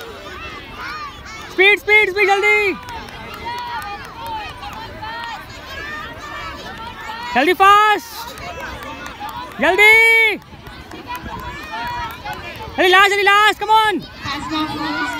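A crowd of children and adults chatters nearby outdoors.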